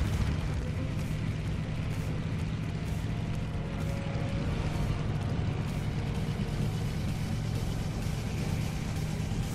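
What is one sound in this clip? A motorbike engine rumbles steadily as it rides along.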